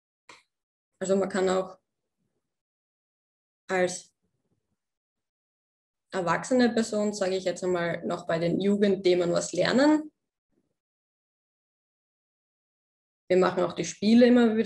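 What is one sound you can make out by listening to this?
A young woman speaks calmly in bursts through an online call microphone.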